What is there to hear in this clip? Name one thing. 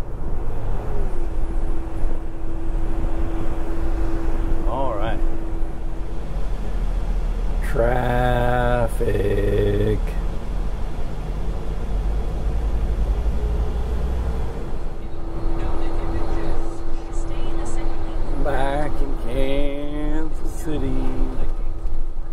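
A car drives along, with a low road rumble heard from inside the cabin.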